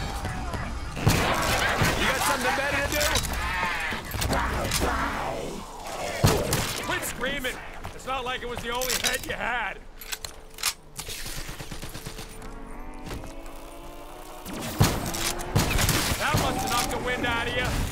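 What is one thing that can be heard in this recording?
A gun fires in loud bursts of shots.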